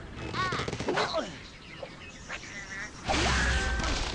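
A slingshot stretches and snaps as a bird is launched.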